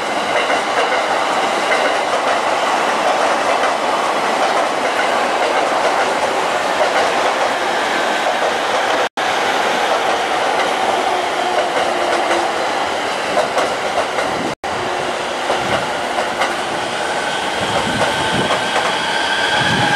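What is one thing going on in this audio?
A train rolls past with a steady rumble and clatter of wheels on the rails.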